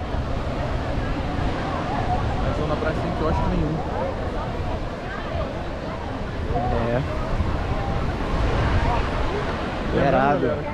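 Waves wash onto a sandy shore.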